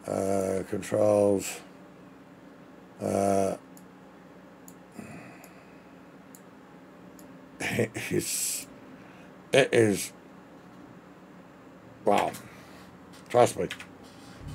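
A middle-aged man speaks with animation into a close microphone, in short bursts.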